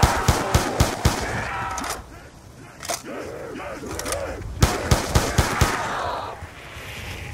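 Zombies growl and groan.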